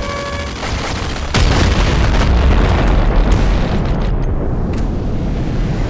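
Explosions boom in a video game.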